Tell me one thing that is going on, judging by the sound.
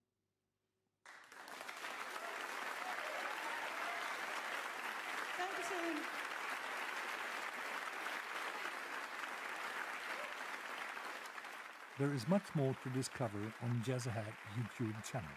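An audience claps and cheers loudly in a large hall.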